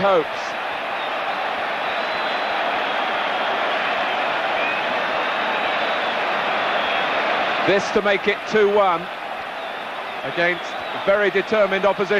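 A large stadium crowd roars and chants outdoors.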